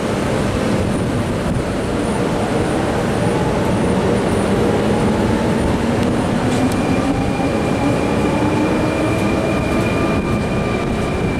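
A train's motors whine, rising steadily in pitch as it speeds up.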